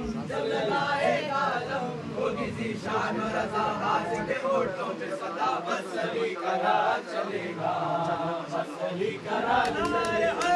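A crowd of men murmurs and chatters close by.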